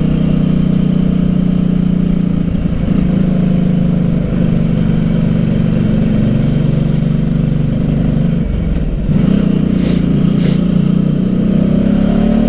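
A motorcycle engine hums steadily close by, its pitch shifting as it changes gear.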